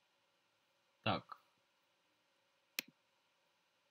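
A computer alert chime sounds.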